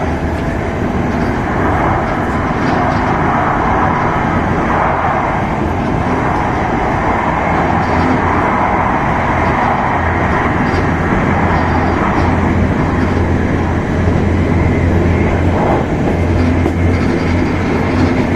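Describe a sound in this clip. A Shinkansen high-speed train rumbles and hums at speed, heard from inside the carriage.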